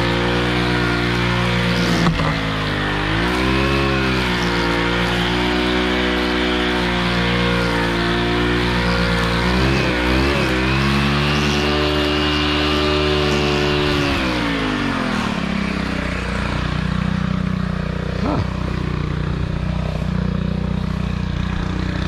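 A string trimmer's engine whines loudly up close, then drops to a low idle.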